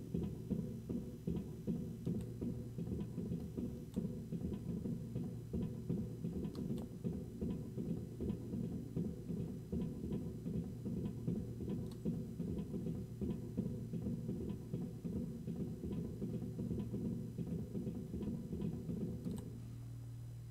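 Footsteps thud quickly and steadily on a metal floor.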